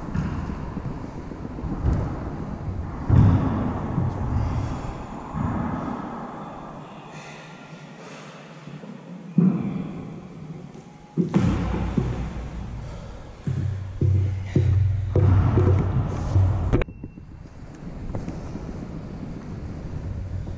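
Sneakers thud and squeak on a wooden floor in a large echoing hall.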